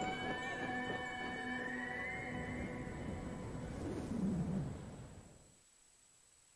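Waves wash gently over open water.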